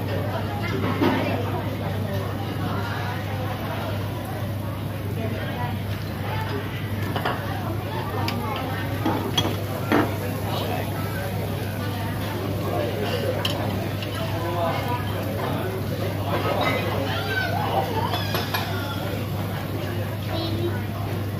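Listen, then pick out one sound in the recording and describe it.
Many people chatter in a busy, noisy room.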